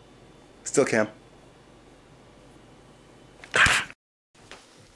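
A man speaks with exaggerated animation close to the microphone.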